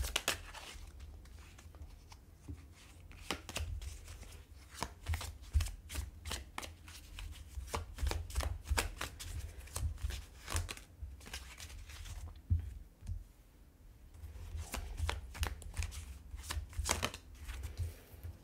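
Playing cards flick and rustle as a deck is shuffled by hand.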